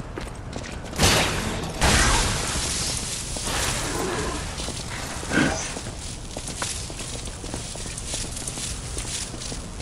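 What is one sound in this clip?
Electricity crackles and buzzes in sharp bursts.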